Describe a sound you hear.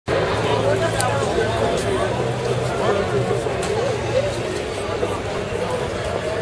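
A crowd of young people chatters nearby outdoors.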